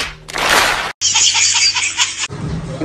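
A baby laughs with delight.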